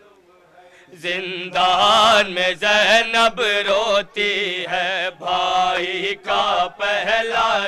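Young men chant loudly together through a microphone.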